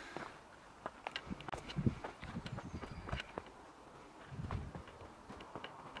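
Footsteps crunch on a dirt and stone trail.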